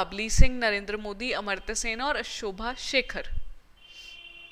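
A young woman speaks clearly into a close microphone.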